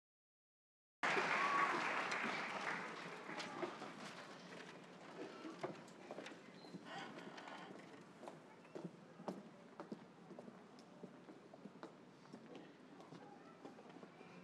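An audience applauds in a large hall, then the clapping thins out and fades.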